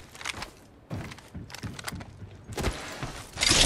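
Footsteps clatter on metal stairs.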